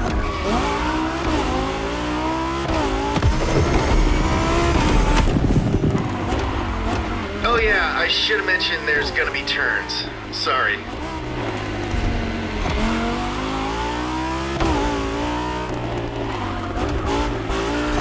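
Tyres screech as a car slides through bends.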